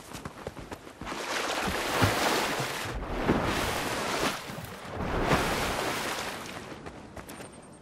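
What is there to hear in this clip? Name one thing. Water splashes loudly as a body plunges in and swims.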